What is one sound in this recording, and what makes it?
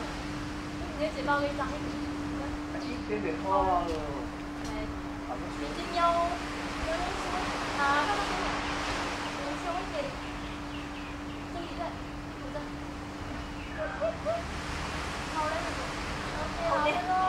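A woman calls out directions outdoors.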